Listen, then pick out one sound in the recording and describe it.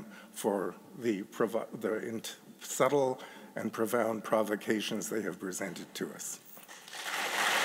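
An elderly man speaks calmly into a microphone in a large room.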